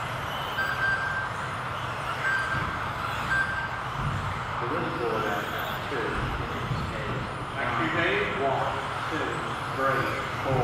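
Small electric model cars whine and buzz around a track in a large echoing hall.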